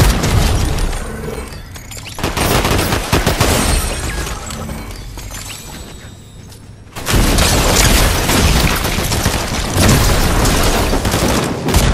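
Video game weapon blasts crackle and whoosh.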